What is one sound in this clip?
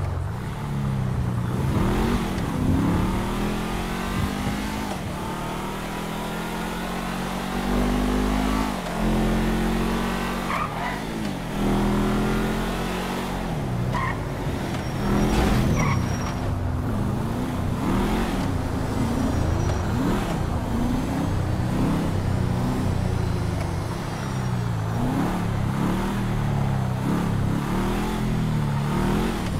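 A car engine hums and revs as the car drives along.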